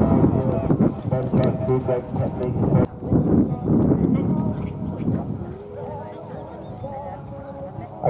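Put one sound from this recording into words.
Horses' hooves thud softly on sand.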